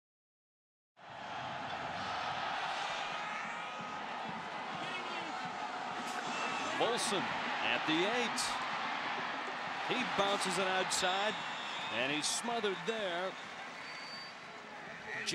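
A large stadium crowd roars and cheers outdoors.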